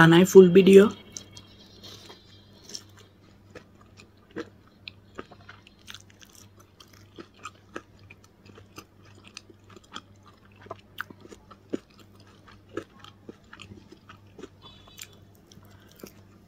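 A young woman bites into crunchy food close by.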